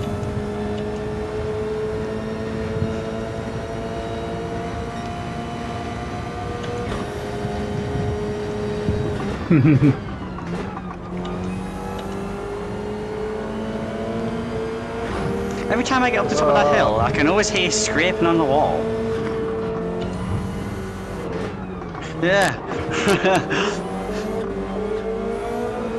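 A racing car engine drones steadily, shifting pitch as the car changes gear.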